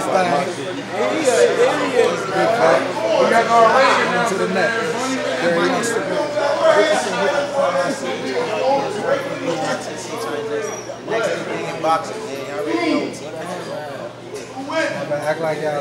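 Several young men talk and banter loudly close by.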